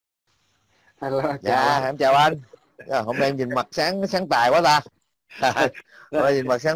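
A middle-aged man talks with animation through an online call.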